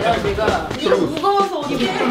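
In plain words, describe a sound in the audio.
A woman laughs and talks.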